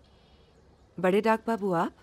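A young woman speaks brightly up close.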